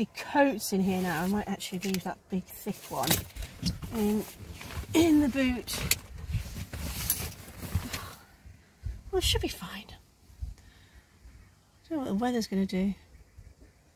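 A woman talks casually, close by.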